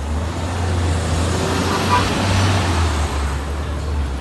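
A bus's air brakes hiss loudly.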